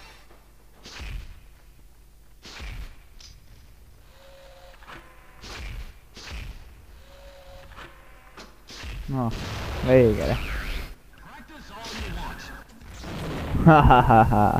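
A weapon fires sharp shots.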